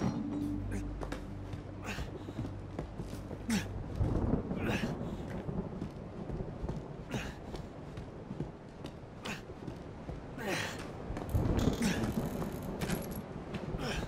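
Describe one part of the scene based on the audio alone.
Footsteps thud on creaking wooden floorboards and stairs.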